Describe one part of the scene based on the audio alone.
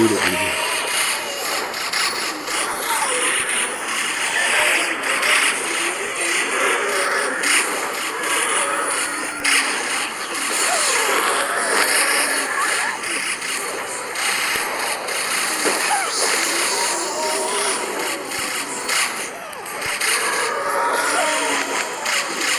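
Game effects pop, zap and burst rapidly, with a busy, constant clatter of small explosions.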